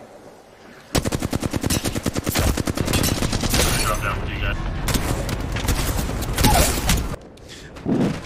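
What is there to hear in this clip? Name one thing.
Rapid gunfire rattles in a game.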